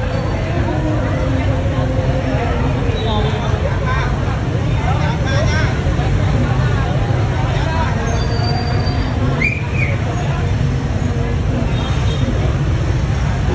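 A crowd of men and women talk and call out excitedly outdoors.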